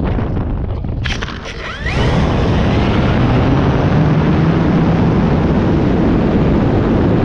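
Wind rushes loudly past the aircraft.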